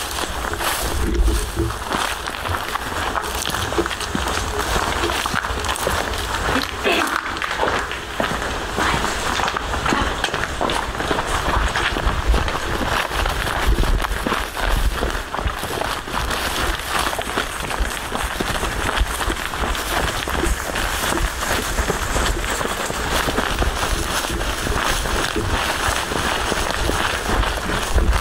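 Footsteps hurry over paving stones and then through rustling grass.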